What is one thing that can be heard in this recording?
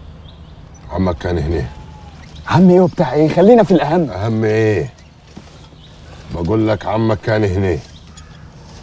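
A man speaks calmly and earnestly nearby.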